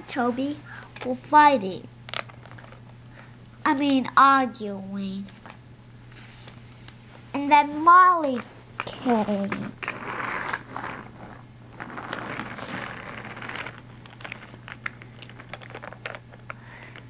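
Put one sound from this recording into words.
Plastic toy train wheels rattle along a plastic track.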